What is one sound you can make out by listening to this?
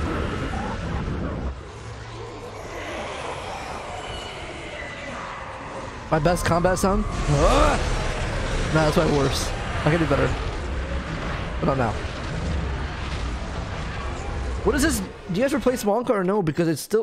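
A magical energy beam roars and rushes.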